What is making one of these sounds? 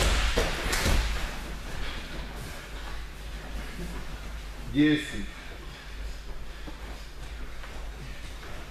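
Bodies shift and thump softly on gym mats.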